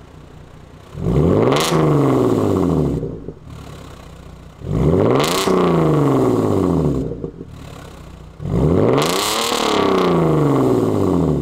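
A car engine revs loudly through its exhaust, rising and falling.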